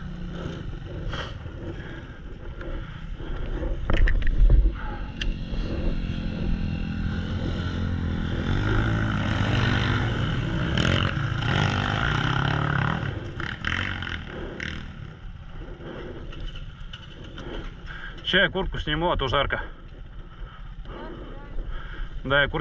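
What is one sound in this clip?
Dirt bike engines idle and rev nearby outdoors.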